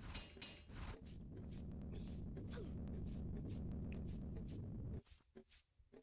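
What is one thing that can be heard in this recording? A heavy boulder rumbles loudly as it rolls.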